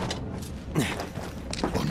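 A heavy kick thuds against a metal door.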